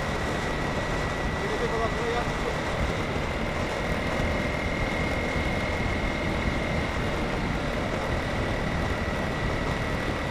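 A motorcycle engine hums steadily while riding along a road.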